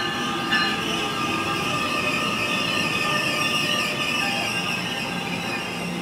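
Train brakes squeal as the train slows to a stop.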